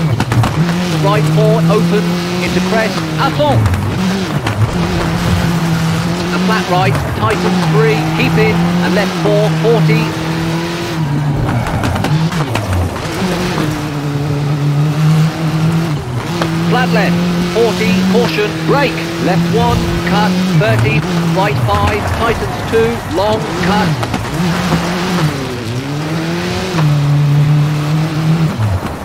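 A rally car engine revs hard, rising and dropping in pitch as gears change.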